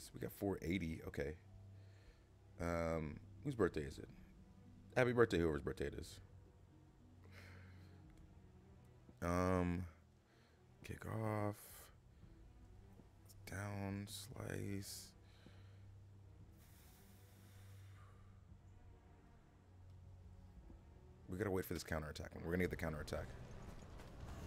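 A man talks with animation into a close microphone, in bursts with pauses.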